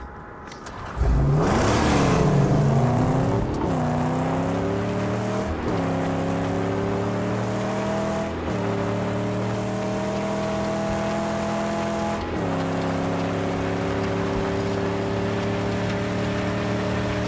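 A car engine roars and revs up through its gears.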